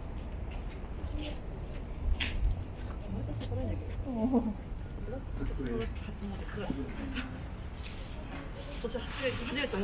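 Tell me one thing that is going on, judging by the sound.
Adults talk quietly nearby.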